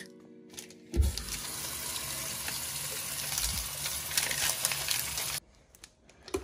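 Water runs from a tap and splashes.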